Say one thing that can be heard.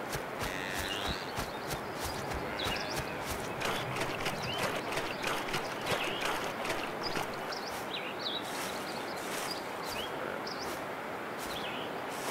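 Water splashes as someone wades through a river.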